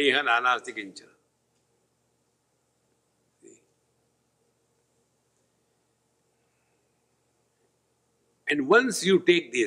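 An elderly man speaks calmly into a close microphone, pausing at length between phrases.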